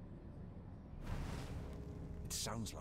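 Fiery bursts whoosh and crackle.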